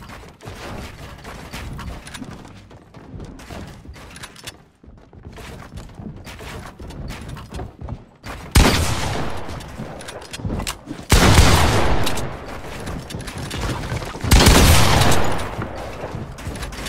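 Game building pieces clack rapidly into place.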